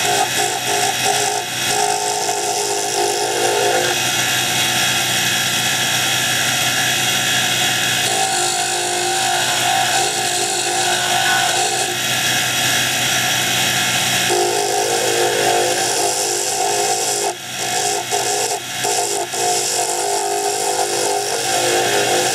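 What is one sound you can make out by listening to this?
Sandpaper hisses against hardwood spinning on a lathe.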